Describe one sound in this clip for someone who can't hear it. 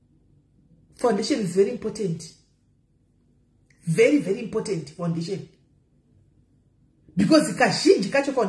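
A middle-aged woman speaks calmly and close up, in short bursts with pauses.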